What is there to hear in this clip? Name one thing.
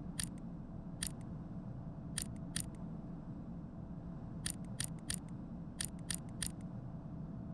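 A combination lock clicks sharply several times.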